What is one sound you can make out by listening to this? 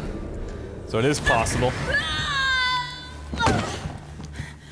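A young woman cries out in alarm.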